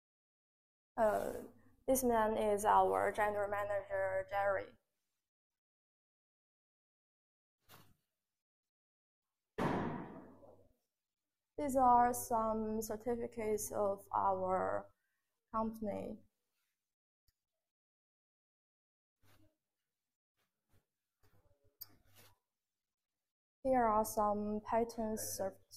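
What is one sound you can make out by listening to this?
A woman speaks calmly, close by, in short phrases.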